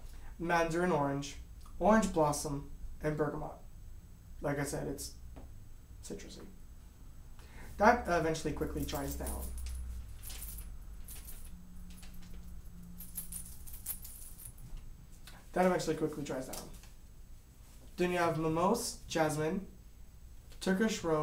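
A young man talks calmly and close to a microphone, with pauses.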